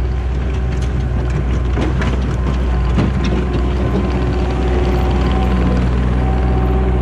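Steel tracks clank and squeak as a loader rolls past.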